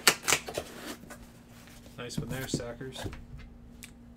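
A cardboard box slides and thumps onto a table mat.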